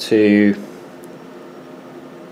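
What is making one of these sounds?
A finger taps lightly on a small touchscreen.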